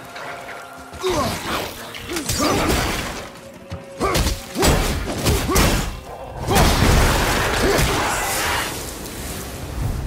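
An axe strikes and smashes wooden objects.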